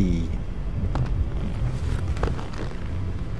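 A padded chair creaks as someone settles into it.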